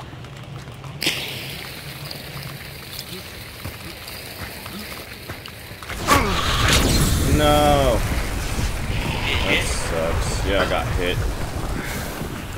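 Fire crackles and roars close by.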